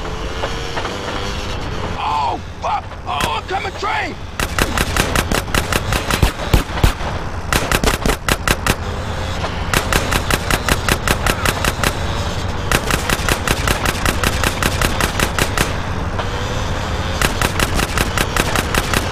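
A motorbike engine roars steadily.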